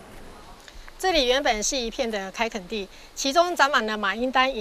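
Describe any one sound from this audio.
An older woman speaks calmly and clearly, close by.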